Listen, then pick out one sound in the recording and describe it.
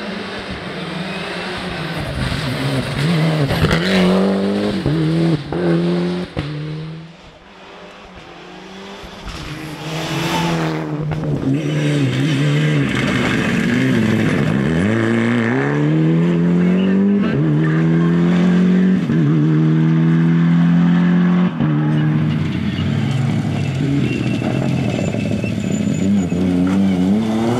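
Rally car engines roar loudly as they race past, revving up and down between gear changes.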